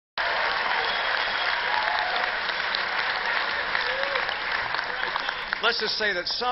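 A crowd laughs and applauds in a large hall.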